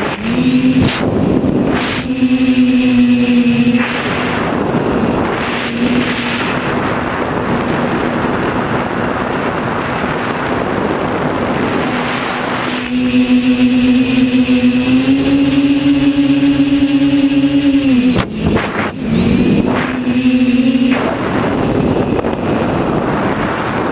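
A small drone's motors buzz with a high whine that rises and falls in pitch.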